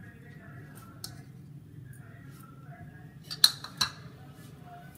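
Metal dishes clink together.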